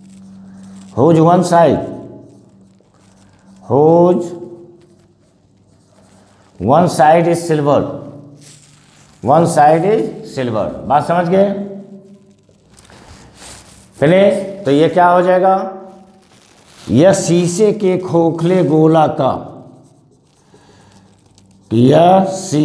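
A man speaks calmly and clearly, as if explaining a lesson, close by.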